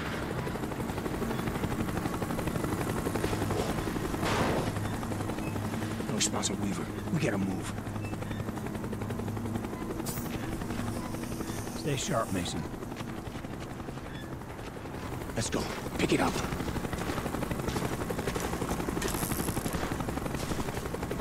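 A helicopter's rotor thumps steadily overhead.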